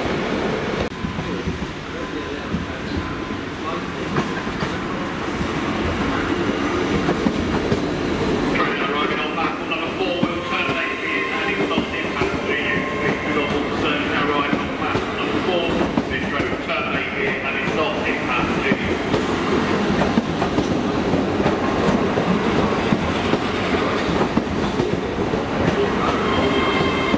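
A train approaches and rumbles past close by.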